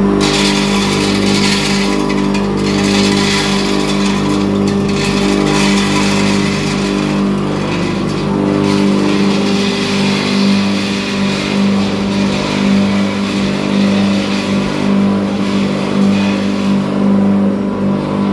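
Dry grains rattle as they pour into a metal hopper.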